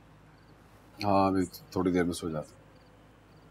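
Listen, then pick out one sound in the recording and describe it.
A young man speaks calmly in a low voice.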